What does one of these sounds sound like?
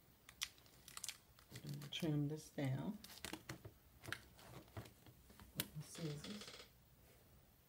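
Cardboard flaps rustle and scrape.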